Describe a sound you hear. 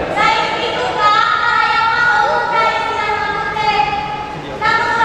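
A young man calls out in long, drawn-out tones through loudspeakers.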